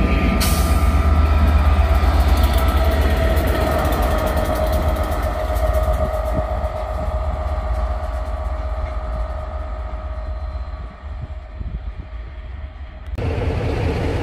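A diesel locomotive engine drones loudly as a train passes close by and fades into the distance.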